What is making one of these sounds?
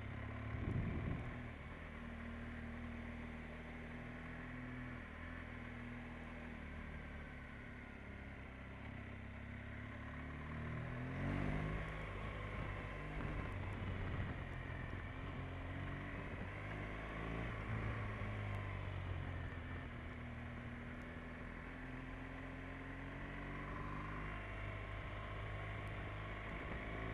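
Wind rushes past a helmet.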